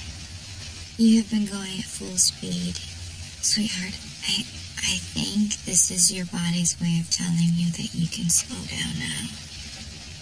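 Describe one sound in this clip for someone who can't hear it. A woman speaks softly nearby.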